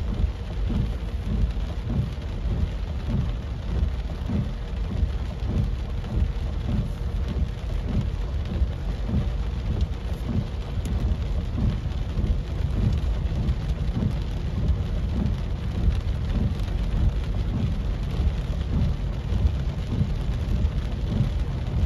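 A windshield wiper thumps and swishes across the glass.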